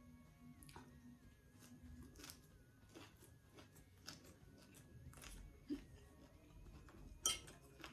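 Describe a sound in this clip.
A woman chews food with smacking sounds.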